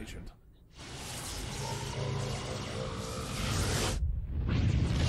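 An electric discharge crackles and roars loudly.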